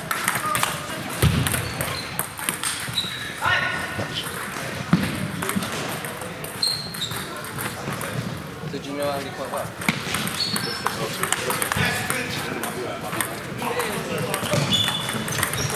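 The sound echoes as in a large hall.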